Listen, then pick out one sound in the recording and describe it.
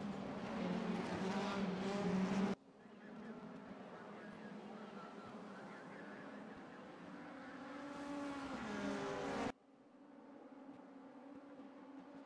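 Racing car engines roar past at high speed, rising and falling in pitch.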